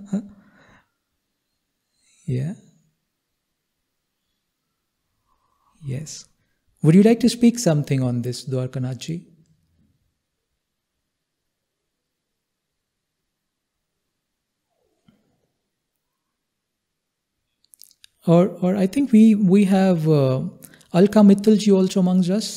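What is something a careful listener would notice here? A man speaks calmly and close into a microphone, pausing often.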